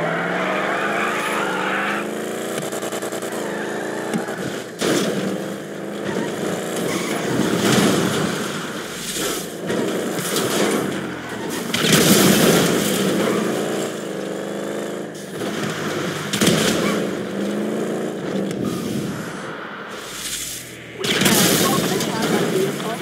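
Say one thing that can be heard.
A car engine revs and roars as it speeds along.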